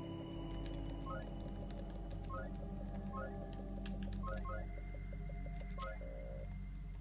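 Short electronic beeps chirp as keys are entered.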